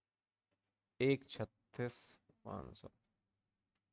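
A man speaks briefly and calmly into a close microphone.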